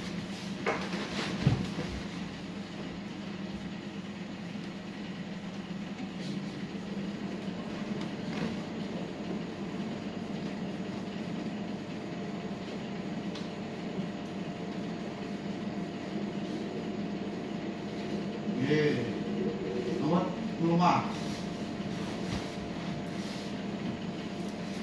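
Hands rub and press on skin.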